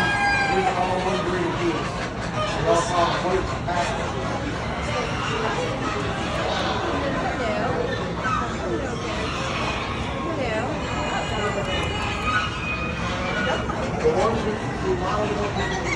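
Ducks quack loudly all around in a large, echoing hall.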